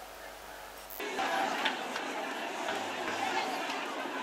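A crowd murmurs in the distance outdoors.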